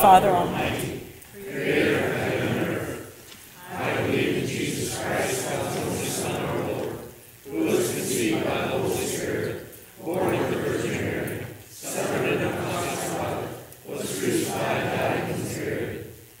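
A congregation speaks together in unison, in phrases with short pauses.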